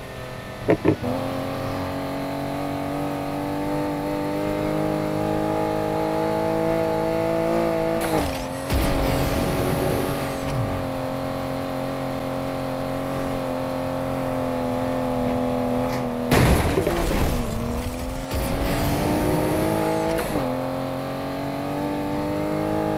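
A sports car engine roars at high speed, its pitch rising and dropping with gear shifts.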